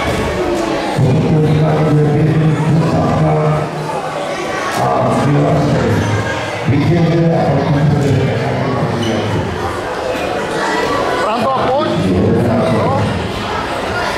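A man speaks loudly and steadily in an echoing hall.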